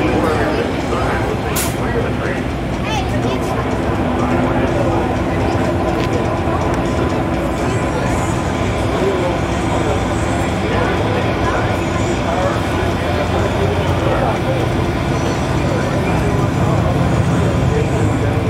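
A race car engine rumbles loudly and steadily nearby.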